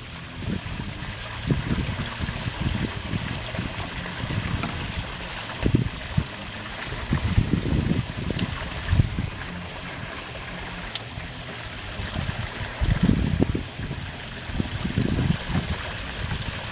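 Water pours from a pipe and splashes into a pool.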